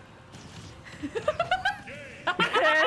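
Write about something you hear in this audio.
A young woman shouts excitedly close to a microphone.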